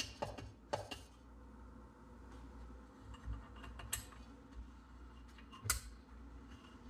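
Metal parts click and knock against an engine casing.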